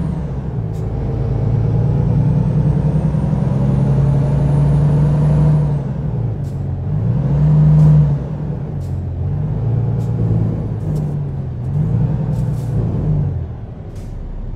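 A truck engine rumbles and revs up and down as the truck manoeuvres.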